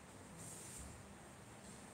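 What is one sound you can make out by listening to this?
A cloth wipes faintly across a whiteboard.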